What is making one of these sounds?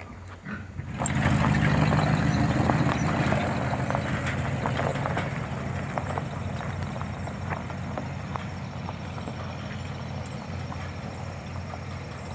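A pickup truck drives away.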